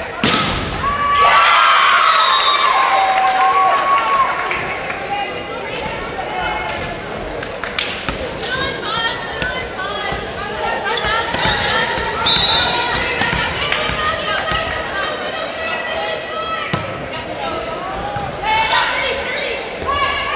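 Young women players call out and chant to each other.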